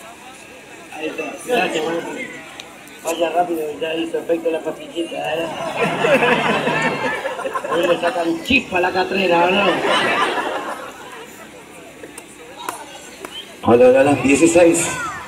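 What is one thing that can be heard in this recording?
A crowd of young people chatters and calls out loudly nearby outdoors.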